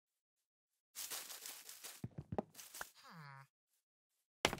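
Leaf blocks crunch as they are broken in a video game.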